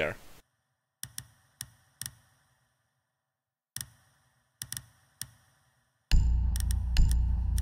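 Short menu clicks sound as options are picked.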